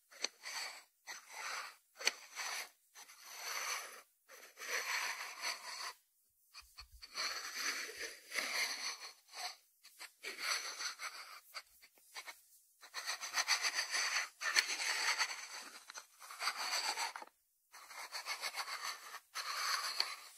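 Fingers rub and scratch over a ceramic salt dish.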